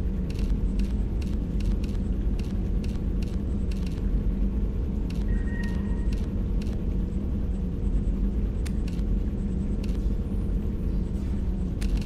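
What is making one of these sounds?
Soft interface clicks tick as settings change.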